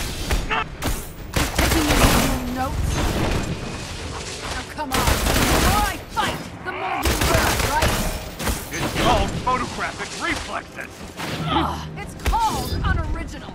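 Metal weapons clang and strike in a fight.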